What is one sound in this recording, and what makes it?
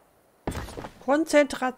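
A young woman speaks with animation into a nearby microphone.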